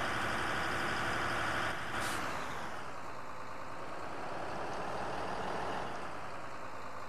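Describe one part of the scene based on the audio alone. A tractor engine hums and slows to a stop.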